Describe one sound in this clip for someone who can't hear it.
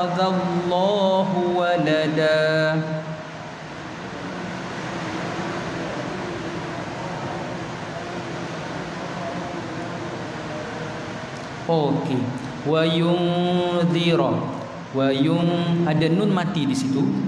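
A man chants in a long, melodic voice through a microphone, echoing in a large hall.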